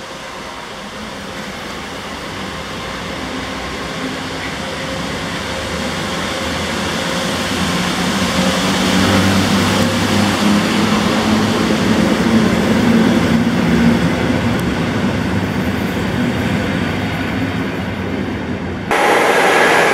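An electric train rumbles and clatters past close by, growing louder.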